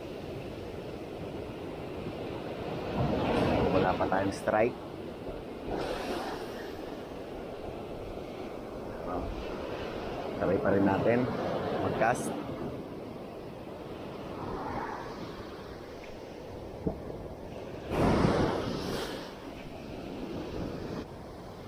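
Waves break and wash up onto a beach nearby.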